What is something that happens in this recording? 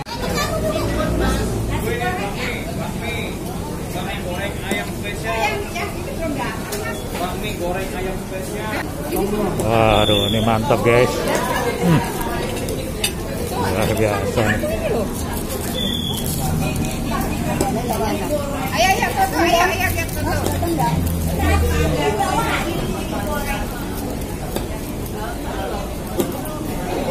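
Several adults chat and laugh nearby.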